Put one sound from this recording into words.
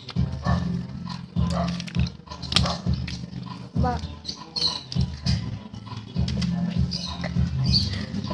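A candy wrapper crinkles and rustles.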